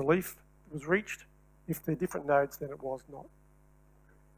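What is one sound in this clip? A man speaks into a microphone, pausing between phrases.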